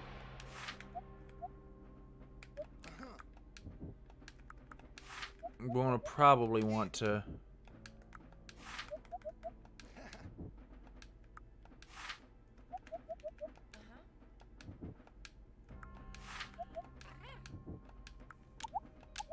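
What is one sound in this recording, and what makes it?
Soft electronic blips sound as menu choices are made.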